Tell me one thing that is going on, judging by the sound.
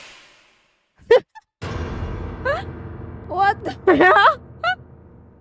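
A young woman exclaims excitedly into a microphone.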